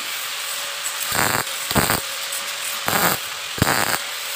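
An electric welder crackles and sizzles in short bursts.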